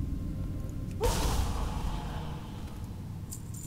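A magic spell bursts with a bright, hissing whoosh that fades away.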